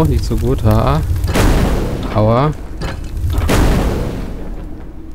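A fireball whooshes closer and bursts with a roar.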